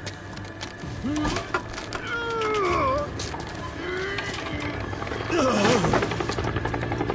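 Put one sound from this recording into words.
A man groans and grunts with strain.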